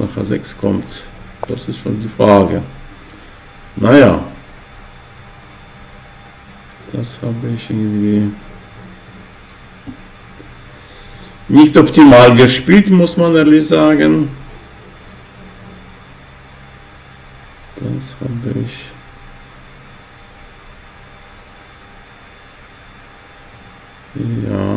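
An elderly man speaks calmly in bursts through a microphone, with pauses in between.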